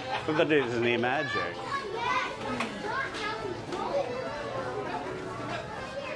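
Children and adults chatter nearby.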